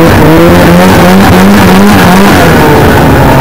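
A snowmobile engine revs loudly up close, rising and falling in pitch.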